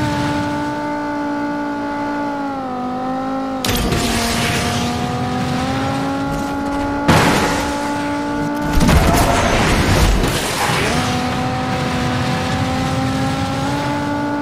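A car engine roars steadily at high speed.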